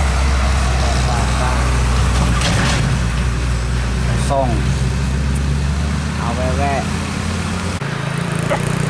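A heavy truck engine rumbles loudly as it climbs past.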